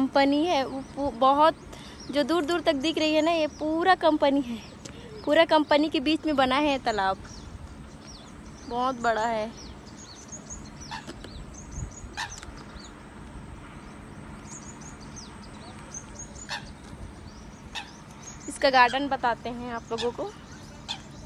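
A young woman talks with animation close to the microphone, in short bursts.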